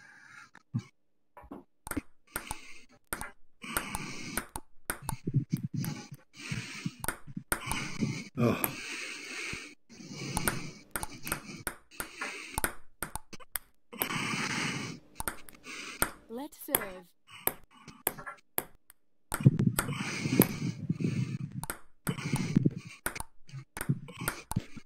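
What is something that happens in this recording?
A ping pong ball clicks sharply against paddles and the table.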